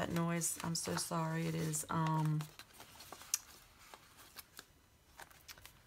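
Sticker paper rustles and crinkles close by.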